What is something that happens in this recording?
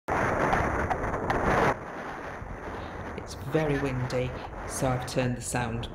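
A horse's hooves clop on a road.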